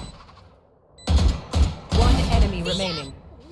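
A gun fires a quick burst of loud shots.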